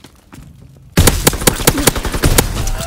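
A rifle fires in rapid loud bursts.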